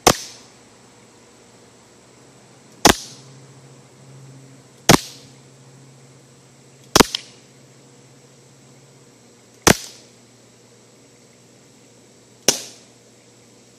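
Gunshots crack sharply one at a time outdoors, each with a short echo.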